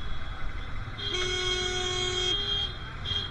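A vehicle horn honks loudly nearby.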